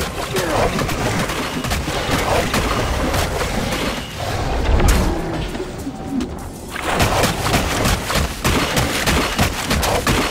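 A blade strikes and thuds repeatedly.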